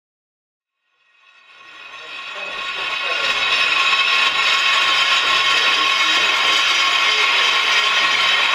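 Musicians play a swelling, droning electronic piece.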